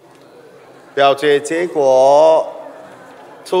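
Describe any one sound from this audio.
A middle-aged man speaks into a microphone in a large echoing hall.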